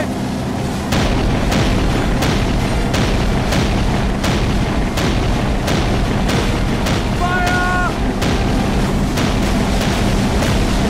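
A mounted machine gun fires rapid bursts.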